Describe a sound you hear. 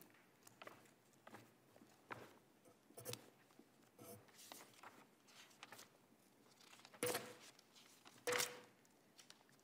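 Paper pages rustle and flip close to a microphone.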